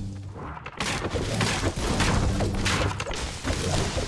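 A pickaxe strikes a bush with dull thuds.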